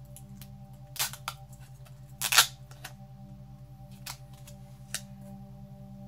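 Plastic clicks and knocks sharply as a small device is handled up close.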